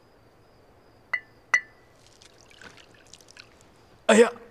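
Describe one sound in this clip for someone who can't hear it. Tea pours into a cup.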